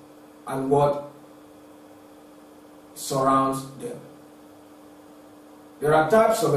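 A young man speaks calmly and clearly, close to a microphone, in short phrases.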